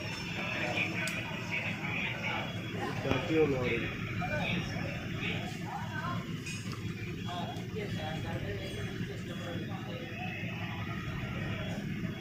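Metal tools clink on a workbench.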